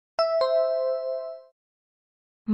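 A bright two-note chime rings and fades.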